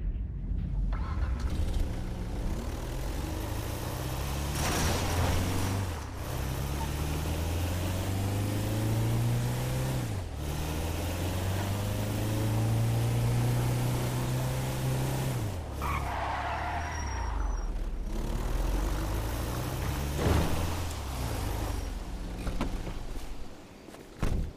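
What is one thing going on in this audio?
A van engine revs hard, accelerating through the gears.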